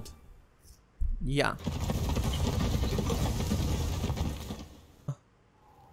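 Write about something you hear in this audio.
A large creature rumbles steadily as it carries a rider along.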